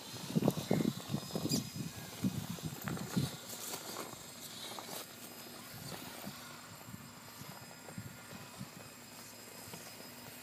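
A small electric motor whines as a toy truck crawls over rocks.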